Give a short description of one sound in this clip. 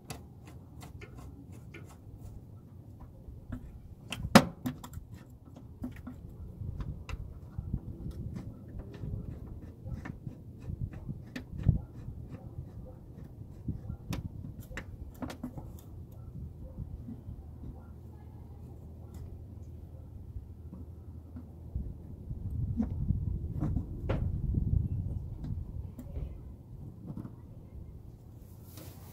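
Small metal parts tap and clink.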